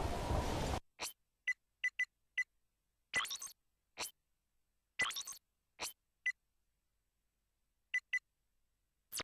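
Short electronic menu beeps sound one after another.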